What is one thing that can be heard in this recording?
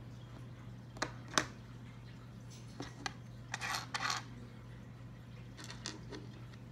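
Plastic toy bricks click and clack on a table.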